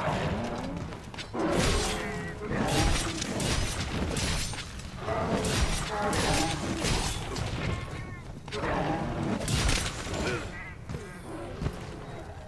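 A heavy blade slashes and thuds against a beast.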